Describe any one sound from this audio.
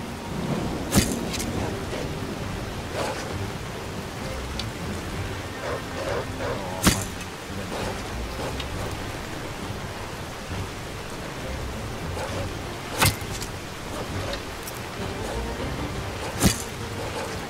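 A bowstring snaps as an arrow is loosed with a sharp twang.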